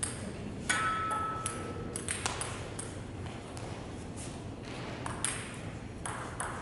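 A table tennis ball taps repeatedly on a paddle in an echoing hall.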